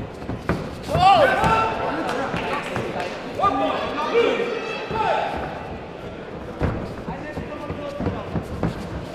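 Padded gloves thud against a body.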